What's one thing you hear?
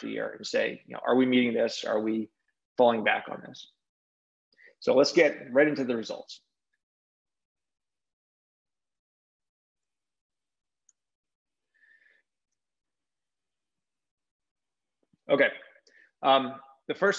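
A man talks calmly through a microphone, in short bursts with pauses.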